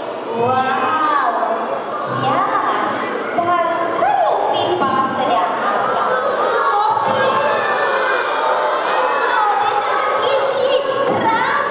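A crowd of children and adults sings loudly and excitedly in a large echoing hall.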